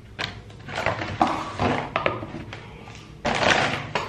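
A plastic lid snaps onto a tub.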